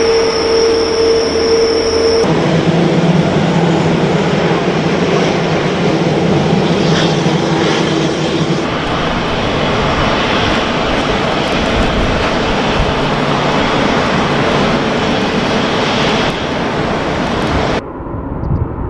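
A jet engine roars loudly as an airliner rolls past.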